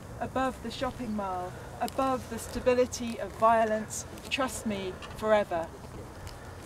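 A woman speaks calmly outdoors, close by.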